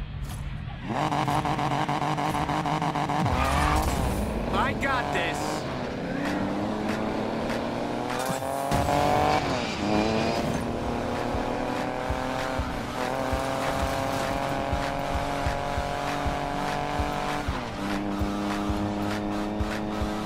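A car engine roars and climbs in pitch as it speeds up.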